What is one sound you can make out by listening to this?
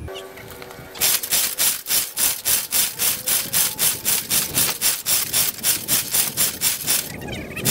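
An old engine chugs in a fast, steady rhythm outdoors.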